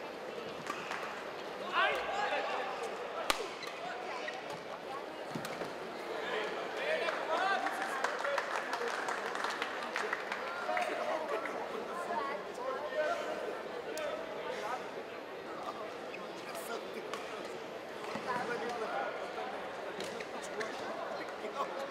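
A crowd in a large echoing hall chatters and cheers.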